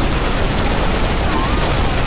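An energy weapon crackles and bursts with an electric blast.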